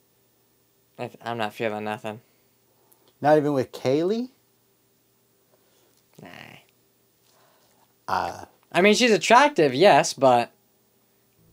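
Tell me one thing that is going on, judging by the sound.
A middle-aged man speaks with animation into a close microphone.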